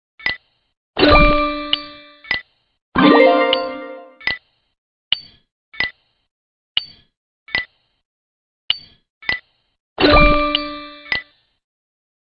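A bright, ringing chime sounds as game pieces merge.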